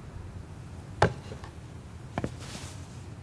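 A paper bowl knocks lightly on a table.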